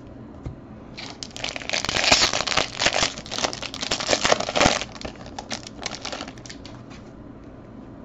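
A foil wrapper crinkles and tears as a pack is opened.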